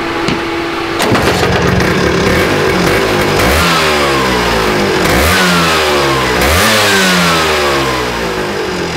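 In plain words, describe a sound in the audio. A scooter engine roars and revs up repeatedly, close by.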